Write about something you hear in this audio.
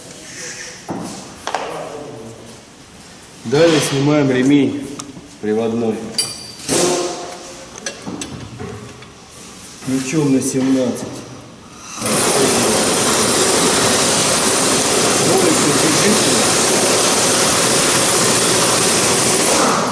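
Metal tools clink against an engine.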